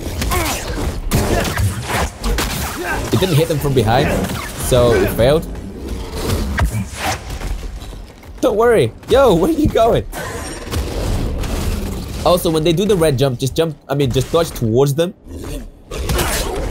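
A lightsaber swooshes and clashes in quick strikes.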